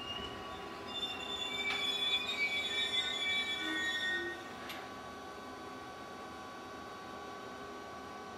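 A train rolls slowly through an echoing station.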